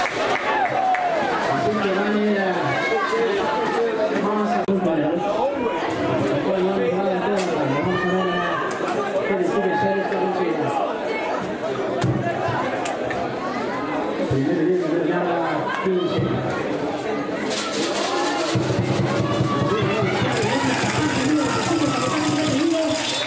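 Young men on a sideline chatter and shout outdoors.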